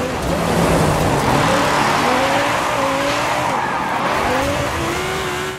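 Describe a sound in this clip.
A sports car engine roars and its pitch rises and falls as it revs.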